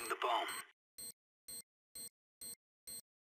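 A planted bomb beeps at a steady pace.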